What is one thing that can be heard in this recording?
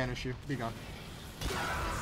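A rocket explodes nearby with a loud bang.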